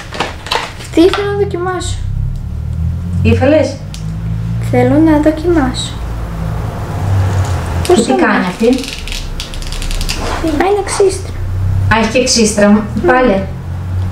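A young girl talks calmly and close by.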